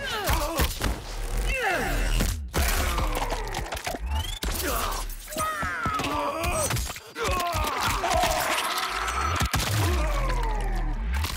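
Bones crunch and snap with heavy blows.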